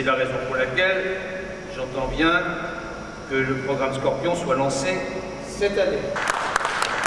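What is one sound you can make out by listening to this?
An older man speaks formally through a microphone in a large echoing hall.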